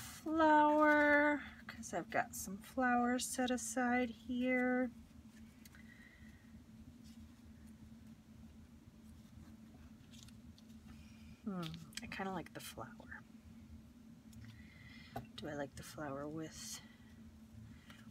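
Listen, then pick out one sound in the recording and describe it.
Paper rustles softly as hands press and handle it.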